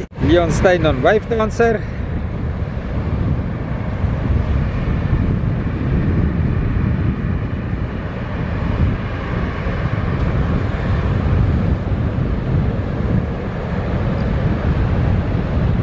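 A boat's outboard motor rumbles close by.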